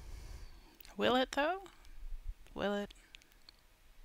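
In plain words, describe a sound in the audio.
A woman speaks with animation into a headset microphone.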